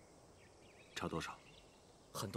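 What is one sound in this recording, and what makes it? A man speaks briefly and firmly nearby.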